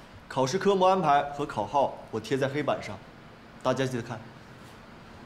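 A young man speaks calmly, announcing to a room.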